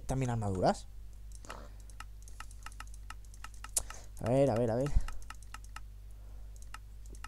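Mouse buttons click quickly again and again.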